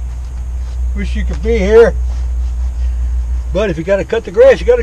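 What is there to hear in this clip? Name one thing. An elderly man speaks close by in short bursts.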